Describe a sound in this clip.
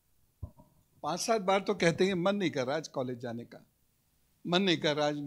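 A middle-aged man speaks into a microphone with animation, close by.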